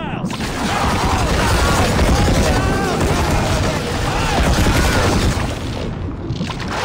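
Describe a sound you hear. Stormy waves crash and roar loudly.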